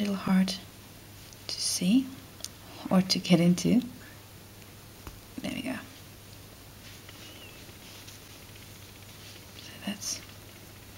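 Yarn rustles softly as it is pulled and looped.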